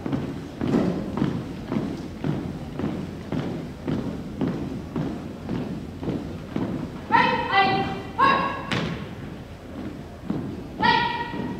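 Boots march in step on a wooden floor, echoing in a large hall.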